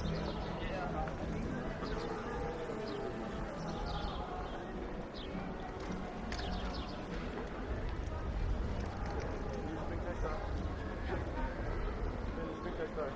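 A crowd of people chatter and murmur outdoors.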